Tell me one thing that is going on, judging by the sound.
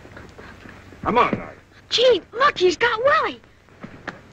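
A young boy yells and wails loudly.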